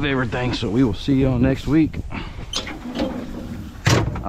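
A metal compartment door latch clicks open.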